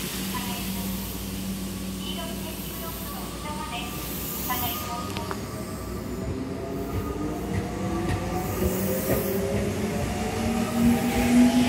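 An electric train pulls away with a rising motor whine.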